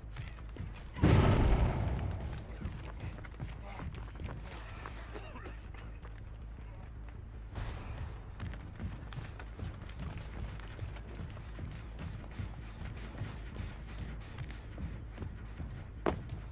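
Heavy footsteps thud steadily over soft ground.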